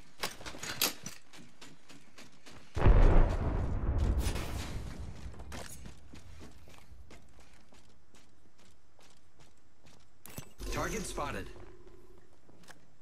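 Footsteps thud quickly and steadily on a metal floor.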